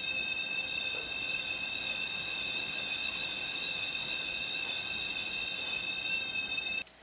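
A whirled tube swung overhead sings with steady, high, layered tones.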